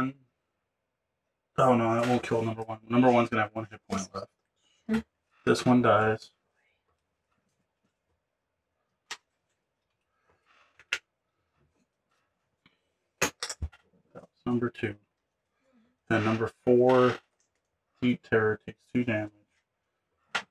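Small game pieces tap and click as they are set down on a board.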